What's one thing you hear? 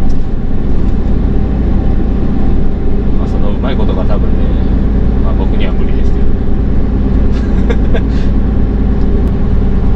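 A truck's diesel engine hums low and steady from inside the cab.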